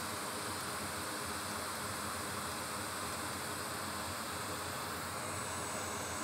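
A cotton swab scrubs softly against a wet circuit board.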